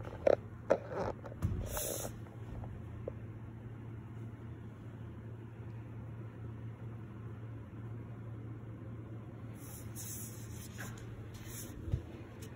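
A hand handles a stretched canvas with soft knocks and rubbing.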